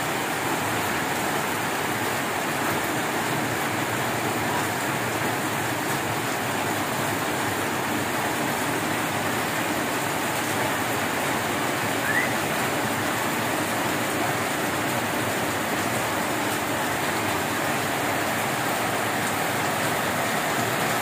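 Rain drums on a metal roof.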